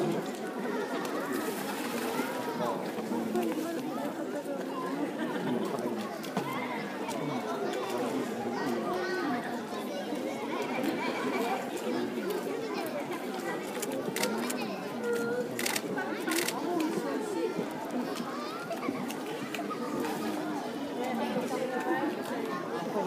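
Water splashes and laps as a large animal swims and paddles.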